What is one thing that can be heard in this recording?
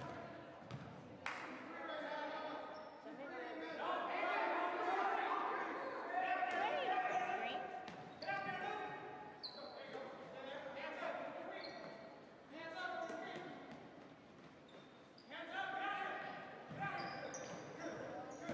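Teenage boys shout and call out in an echoing gym.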